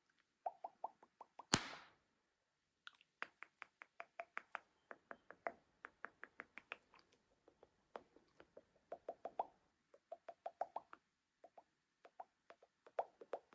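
Rubber snaps and pops in quick, repeated clicks close by.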